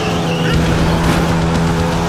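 Tyres skid and scrape on loose gravel.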